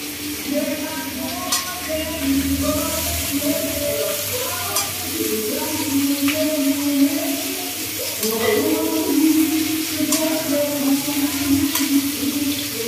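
A metal spoon clinks against a pan.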